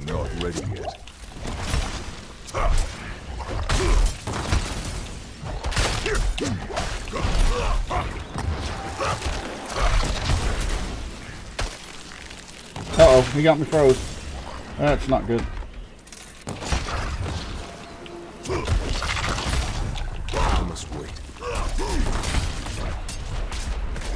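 Game combat sounds of weapons striking and spells bursting come quickly one after another.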